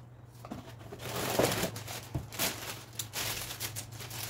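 A plastic bread bag crinkles loudly.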